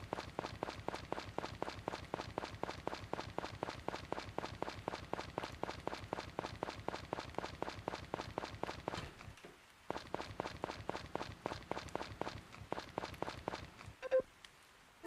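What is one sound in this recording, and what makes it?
Quick light footsteps tap steadily on a hard path.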